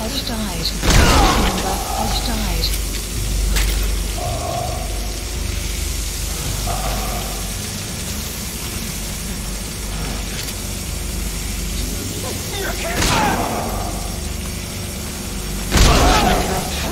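A suppressed pistol fires with a sharp crack.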